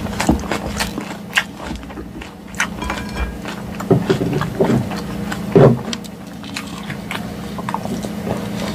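A fork scrapes and clinks in a bowl of salad.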